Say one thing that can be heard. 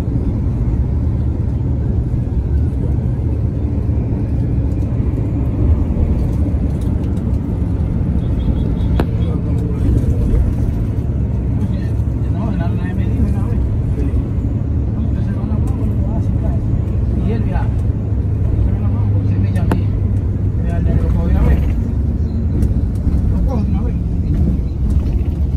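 A car's engine and tyres rumble steadily while driving along a road.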